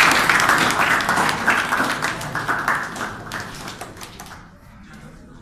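A crowd claps loudly in a room.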